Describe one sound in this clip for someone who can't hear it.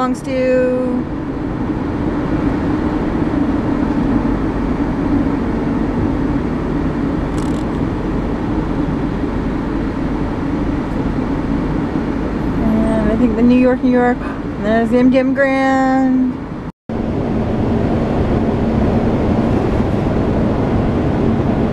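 Tyres and engine hum steadily from inside a moving car.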